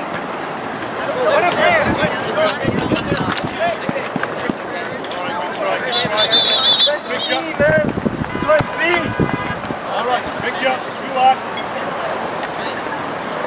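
Young men shout to each other across an open outdoor field.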